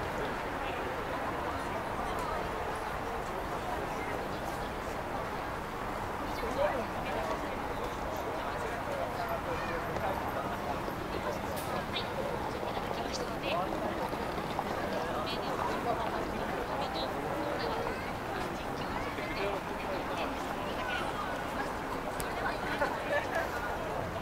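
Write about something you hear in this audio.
A large crowd chatters and murmurs all around, outdoors.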